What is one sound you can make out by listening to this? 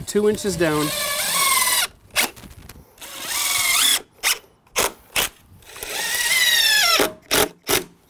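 A cordless drill whirs in short bursts, its pitch rising as screws drive into wood.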